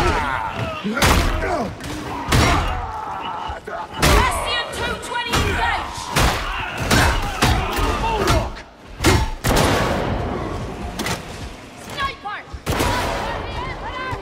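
Guns fire in loud, sharp bursts.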